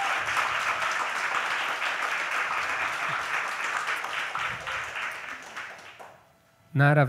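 An audience applauds in a hall, then the applause fades.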